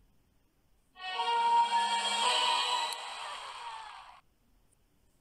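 A short triumphant tune plays.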